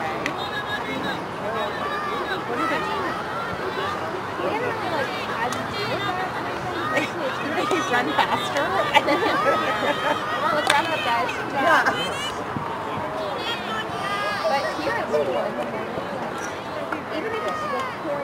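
A crowd of spectators chatters and cheers from the sidelines outdoors.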